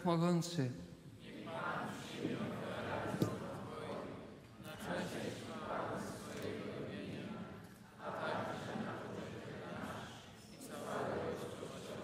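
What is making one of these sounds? An elderly man reads aloud calmly through a microphone.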